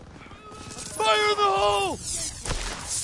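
A young man shouts into a microphone.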